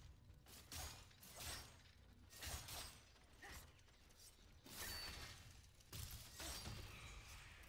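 A blade swishes and clangs in a sword fight.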